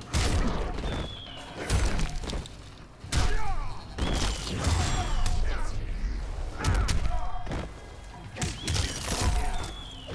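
Ice blasts crackle and shatter.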